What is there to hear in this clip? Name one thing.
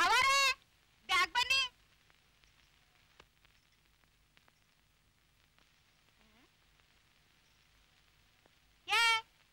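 A woman speaks loudly and with animation, close by.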